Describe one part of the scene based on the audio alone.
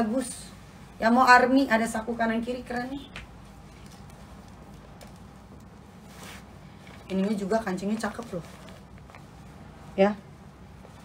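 Fabric rustles as a garment is handled.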